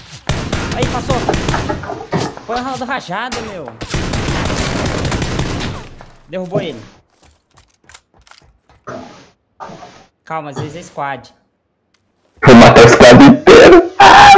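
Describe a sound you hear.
Rifle shots fire in rapid bursts, close by.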